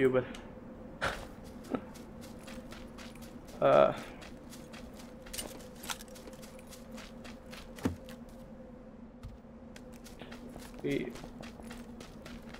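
Footsteps crunch quickly over grass.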